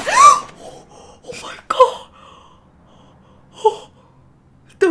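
A young woman gasps and whimpers anxiously into a microphone.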